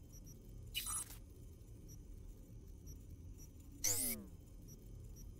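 Short electronic interface sounds whoosh and sweep.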